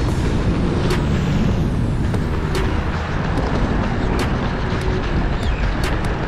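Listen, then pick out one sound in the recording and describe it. Running shoes slap rhythmically on pavement.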